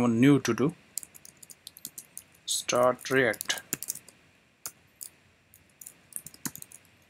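Keys clack on a computer keyboard in quick bursts of typing.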